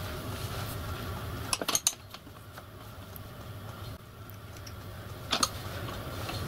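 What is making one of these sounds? Small metal parts click softly against each other.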